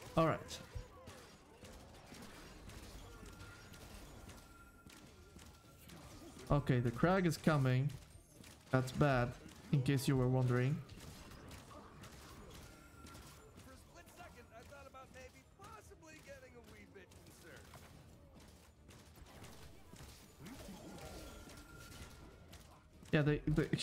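Game weapons clash and thud in quick bursts.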